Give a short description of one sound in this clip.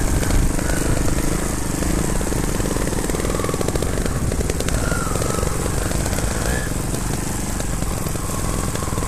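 Trials motorcycle engines chug up a grassy trail close by.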